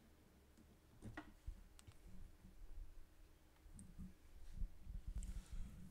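A phone is handled close by with faint taps and knocks.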